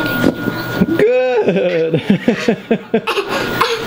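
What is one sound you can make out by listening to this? A young girl laughs and squeals close by.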